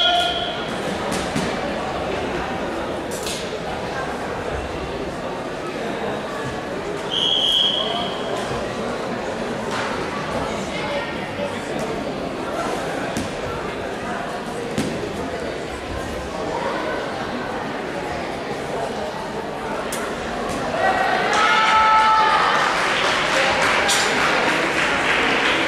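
Feet stamp and thud on a padded mat.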